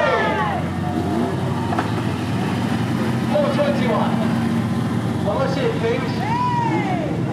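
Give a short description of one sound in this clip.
An engine rumbles steadily close by.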